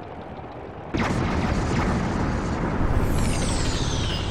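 A deep explosion booms and rumbles away.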